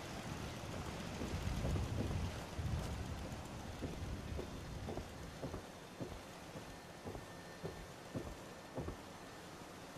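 Footsteps thud on wooden boards at a steady walking pace.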